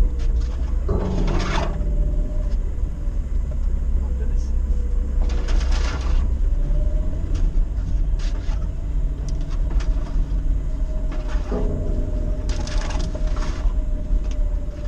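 Vegetation brushes and scrapes against the sides of a vehicle.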